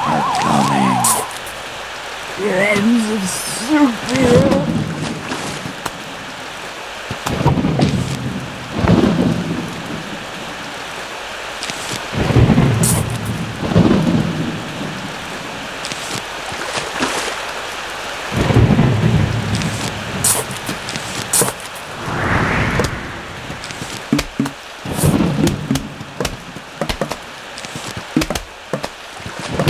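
A video game plays short cartoon sound effects.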